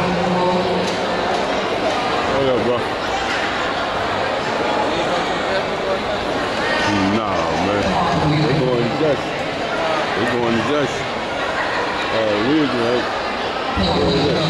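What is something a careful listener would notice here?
Music with singing plays loudly over loudspeakers in a large echoing hall.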